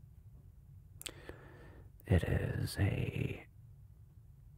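A man speaks calmly and quietly, close to a microphone.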